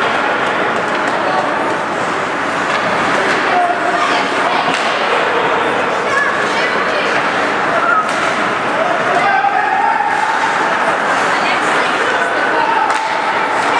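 A crowd of spectators chatters and cheers in a large echoing arena.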